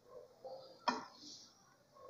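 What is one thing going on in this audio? A spoon scrapes against a pan.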